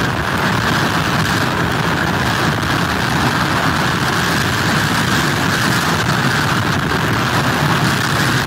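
Heavy surf crashes and roars against pier pilings.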